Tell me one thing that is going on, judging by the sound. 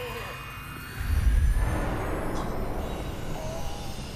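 A heavy machine hums and rumbles as a large platform moves.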